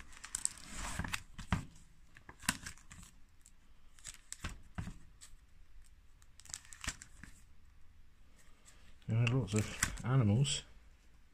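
Plastic album pages crinkle and flap as they are turned by hand.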